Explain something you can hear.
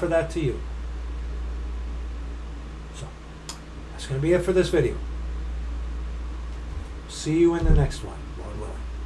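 A middle-aged man speaks calmly in short bursts, close to a microphone.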